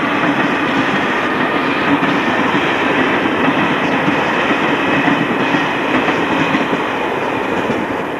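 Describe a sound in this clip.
A diesel locomotive engine idles with a steady hum.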